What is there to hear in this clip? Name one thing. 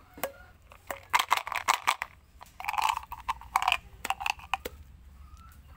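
Candies clatter as they are shaken out of a plastic tube.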